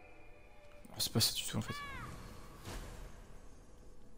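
A magical burst whooshes and rings out with shimmering chimes.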